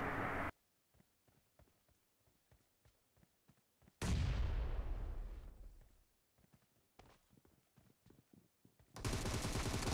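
Footsteps tap on the ground.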